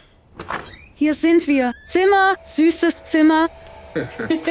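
A young woman sings out joyfully and loudly, close by.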